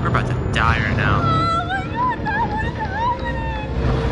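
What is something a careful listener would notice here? A young woman screams and cries out in panic.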